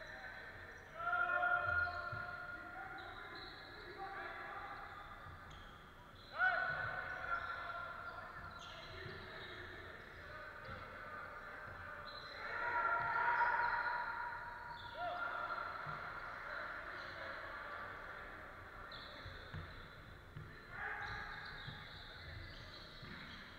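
Sneakers squeak sharply on a wooden court in a large echoing hall.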